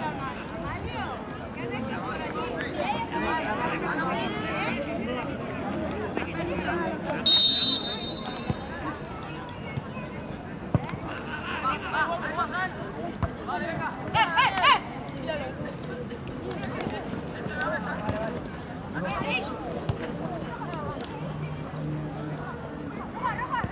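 Boys and young men shout and call out to each other across an open field.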